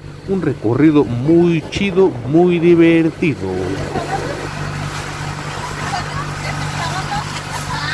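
A boat engine hums steadily.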